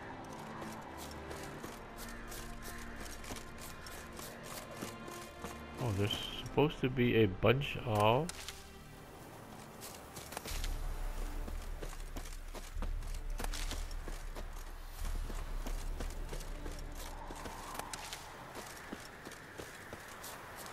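Footsteps rustle quickly through tall grass and brush.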